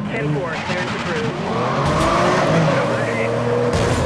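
Tyres screech as a car slides through a turn.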